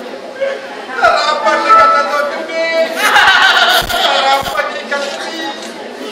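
An audience laughs and cheers loudly.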